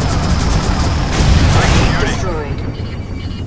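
An explosion roars.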